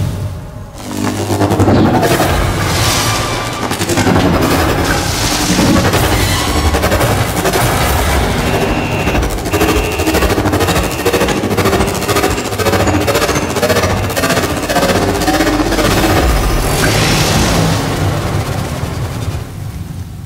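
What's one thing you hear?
A heavy machine hums and roars.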